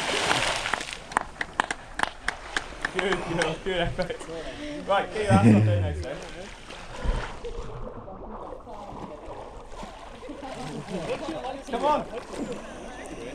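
Water laps and splashes around a swimmer.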